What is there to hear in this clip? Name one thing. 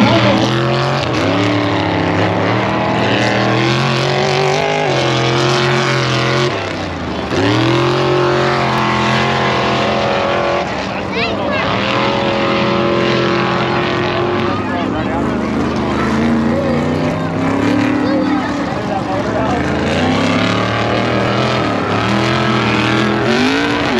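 Off-road truck engines roar and rev loudly nearby.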